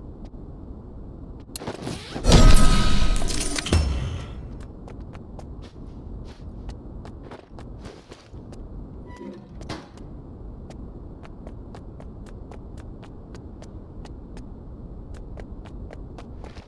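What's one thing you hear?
Footsteps tread on a hard floor at a steady pace.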